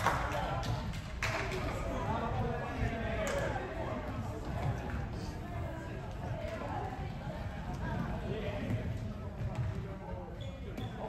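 Spectators nearby talk quietly.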